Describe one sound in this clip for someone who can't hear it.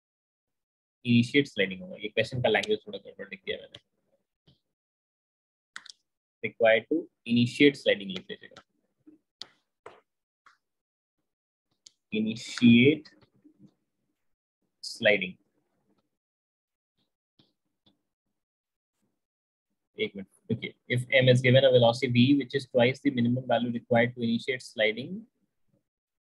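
A man speaks calmly into a close microphone, explaining in short bursts with pauses.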